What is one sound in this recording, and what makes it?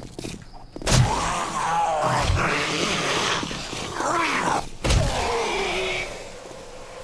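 A zombie growls and groans hoarsely.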